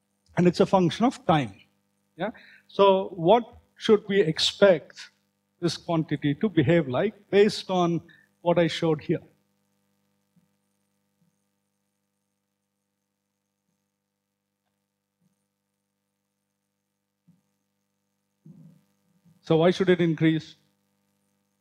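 A man lectures calmly through a microphone, with pauses.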